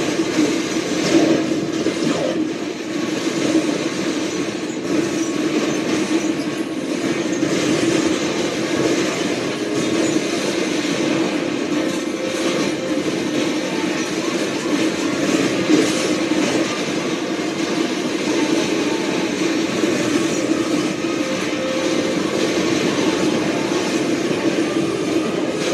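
Video game explosions and gunfire boom from a television speaker.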